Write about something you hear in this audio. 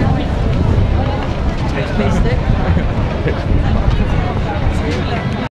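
A large crowd chatters outdoors on a busy street.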